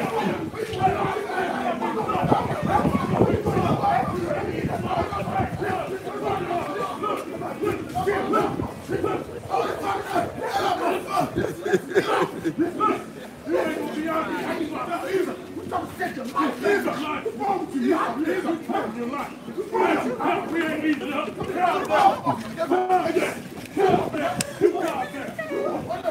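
Men shout and argue loudly outdoors.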